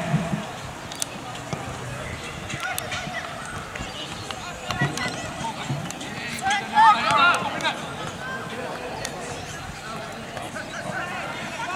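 A football thumps as young players kick it outdoors.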